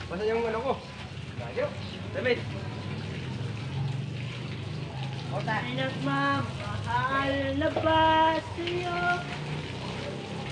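Men call out to each other outdoors.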